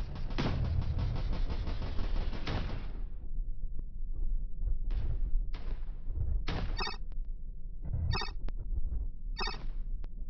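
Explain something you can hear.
A spacecraft engine rumbles low and steadily.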